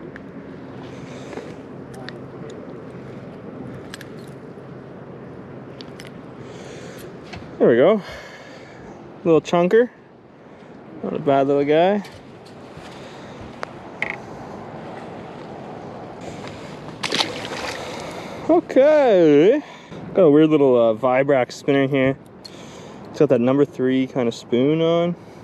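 Water laps gently against a boat hull.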